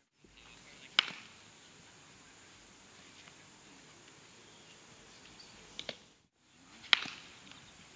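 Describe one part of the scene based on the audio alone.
A baseball smacks sharply into a leather glove outdoors.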